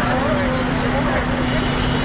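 A bus drives by.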